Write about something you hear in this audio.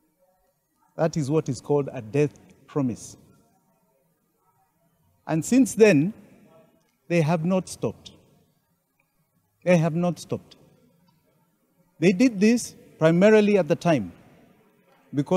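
A middle-aged man speaks calmly into microphones close by, in short bursts with pauses.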